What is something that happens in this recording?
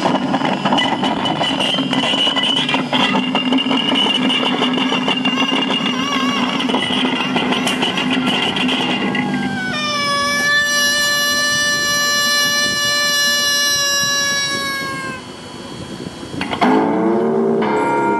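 A man plays a wind instrument in long, droning notes outdoors.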